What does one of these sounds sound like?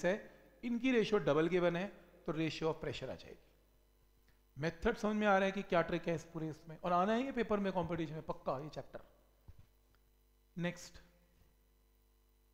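A man explains calmly, close to a microphone.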